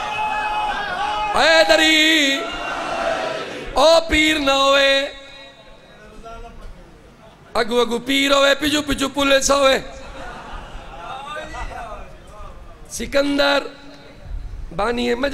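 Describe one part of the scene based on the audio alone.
A group of young men chant along in chorus.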